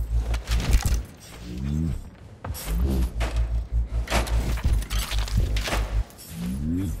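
Metal drawers rattle and slide open.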